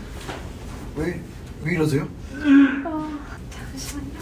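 A man groans and retches loudly nearby.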